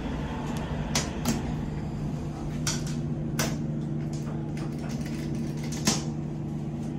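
Fingers click lift buttons several times.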